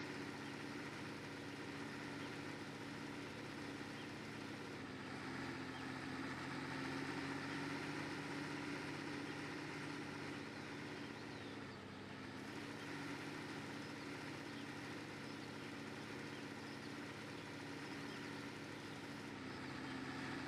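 Fertiliser hisses from a spreader behind a tractor.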